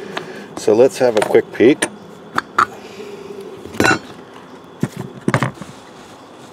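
Metal parts clink and scrape against each other.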